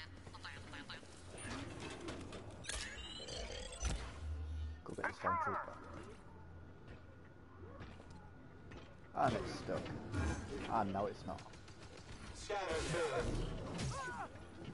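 A lightsaber swings and whooshes through the air.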